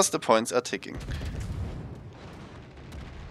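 An explosion booms and rumbles deeply.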